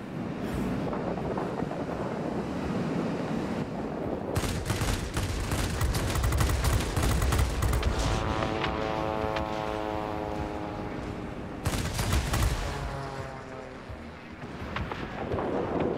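A propeller plane's engine drones steadily, rising and falling in pitch.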